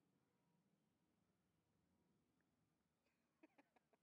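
A little girl makes a soft cooing sound close by.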